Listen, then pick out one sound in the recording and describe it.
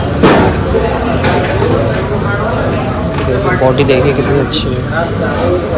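Fingers rustle and crunch through dry fried rice on a metal plate.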